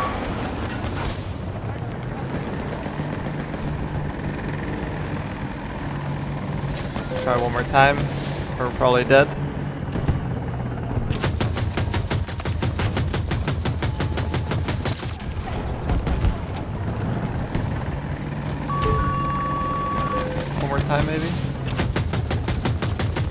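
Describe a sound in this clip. A helicopter's rotor thrums steadily.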